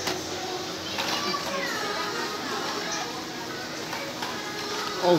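Plastic toy packages rustle and clack as a hand pulls them from hooks.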